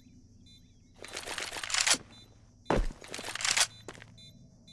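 A rifle is drawn with a metallic rattle and click.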